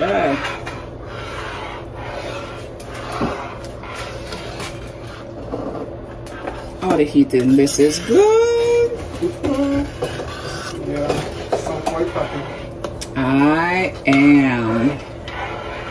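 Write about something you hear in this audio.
A spoon stirs thick soup in a pot with soft, wet scraping.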